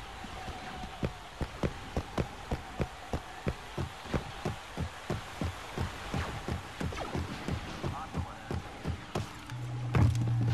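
Footsteps thud quickly on wooden planks.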